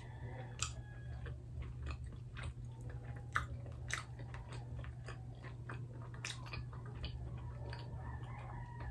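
A young woman chews loudly close to a microphone.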